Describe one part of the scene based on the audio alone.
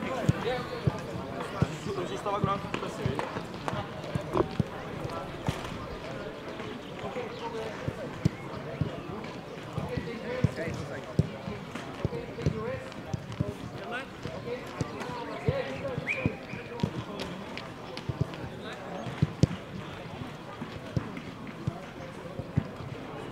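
Men talk nearby outdoors, with voices mingling.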